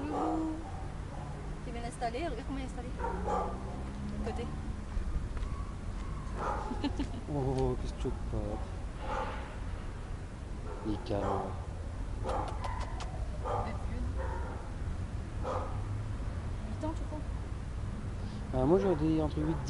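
A young woman talks softly and warmly, close by.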